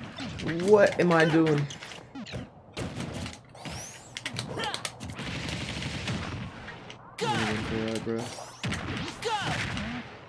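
Video game fighting sounds of punches, hits and whooshes come in quick bursts.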